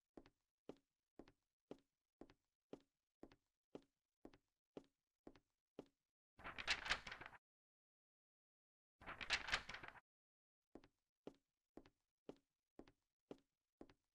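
Footsteps tread at an even, steady pace.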